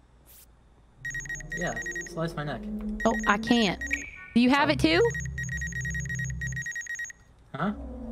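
A game scanner hums and beeps steadily.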